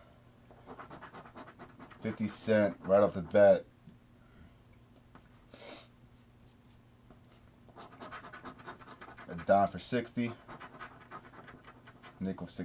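A coin scratches rapidly across a scratch card.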